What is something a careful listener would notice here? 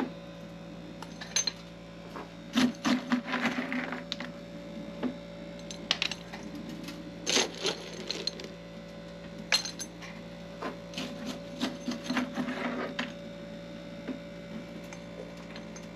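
Metal clinks and knocks as a hand works small fittings.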